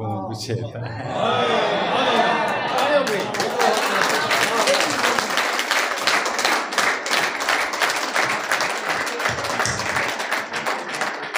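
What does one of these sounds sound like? A crowd cheers and shouts with excitement.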